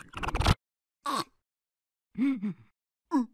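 A small cartoonish creature babbles in short squeaky bursts.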